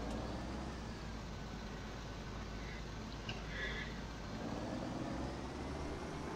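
A tractor engine rumbles steadily at idle.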